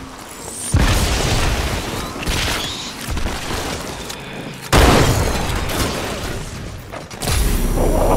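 Energy weapons crackle and explode with bright bursts.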